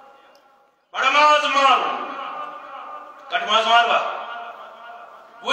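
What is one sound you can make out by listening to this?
A middle-aged man preaches loudly into a microphone, his voice echoing through a hall.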